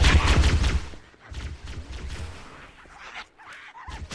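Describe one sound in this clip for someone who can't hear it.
A plasma pistol fires.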